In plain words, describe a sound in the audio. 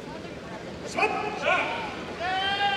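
A male referee calls out sharply in a large hall.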